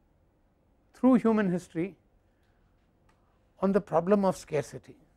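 An elderly man speaks calmly through a clip-on microphone.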